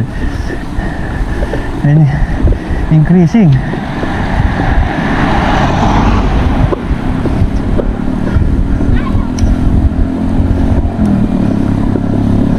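Wind rushes past as a bicycle rides along a road.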